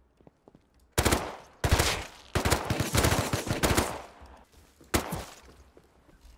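A rifle fires rapid, loud gunshots.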